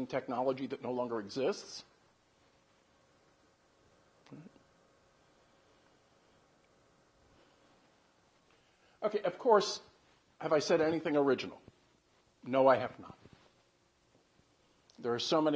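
An older man speaks calmly, pausing between phrases.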